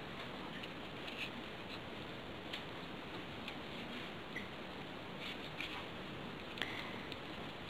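Paper pieces rustle and click as fingers fit them together.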